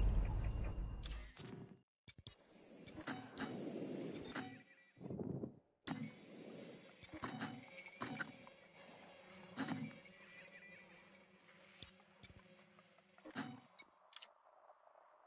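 Short electronic beeps and clicks sound from an interface.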